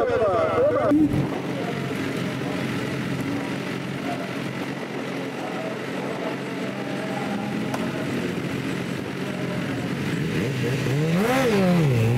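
A motorcycle engine idles and revs at a start line.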